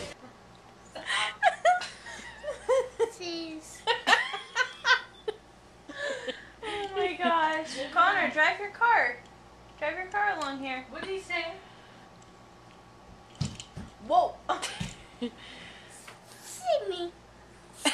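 A woman talks playfully close by.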